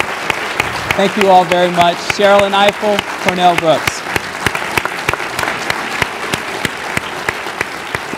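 A woman claps her hands repeatedly.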